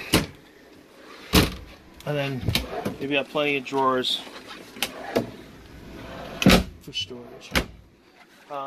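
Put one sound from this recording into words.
Wooden cabinet doors and drawers bang and clack as they are opened and shut.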